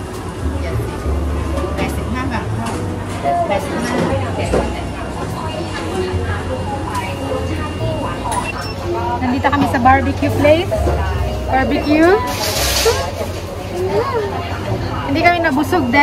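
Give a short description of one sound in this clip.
People murmur in the background of a large indoor hall.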